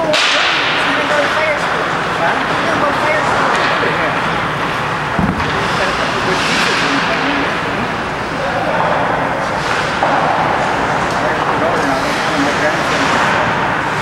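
An older man talks calmly and close by.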